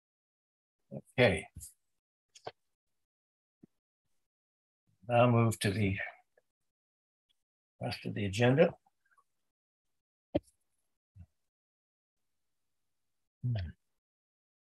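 A man speaks in short, halting phrases over an online call.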